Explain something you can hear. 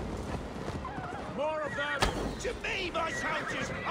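A man shouts loudly from a short distance.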